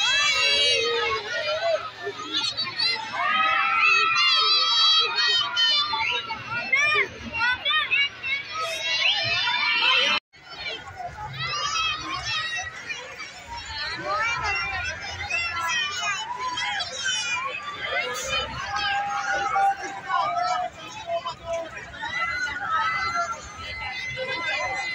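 A crowd of young riders scream and shriek excitedly on a fairground ride.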